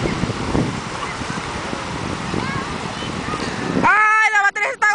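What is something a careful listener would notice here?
Small waves wash onto the shore.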